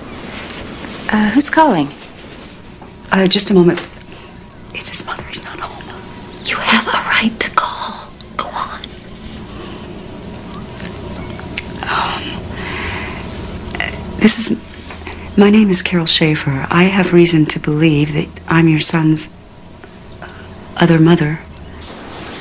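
A woman speaks calmly into a phone.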